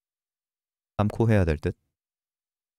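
A young man speaks briefly and with animation into a microphone.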